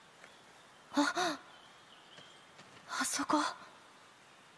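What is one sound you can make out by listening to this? A young woman speaks in short, excited bursts.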